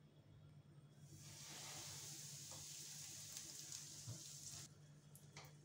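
Food sizzles loudly in hot oil in a frying pan.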